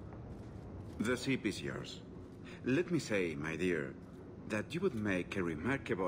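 A man speaks smoothly and charmingly.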